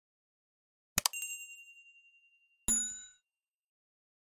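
A bell chimes brightly.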